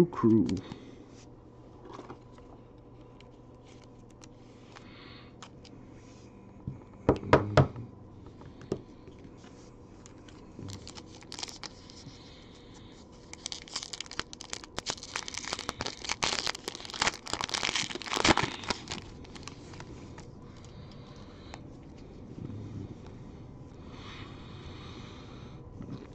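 Trading cards slide and tap against each other in hands.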